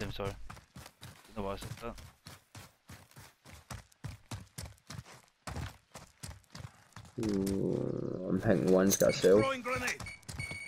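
Footsteps crunch quickly and steadily on snow.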